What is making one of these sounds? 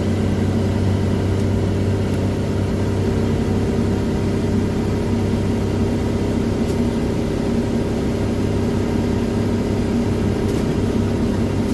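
Tyres hum and road noise roars, echoing through a tunnel.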